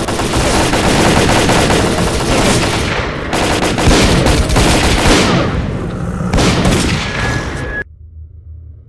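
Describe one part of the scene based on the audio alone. A loud rushing roar of an explosion fills the air.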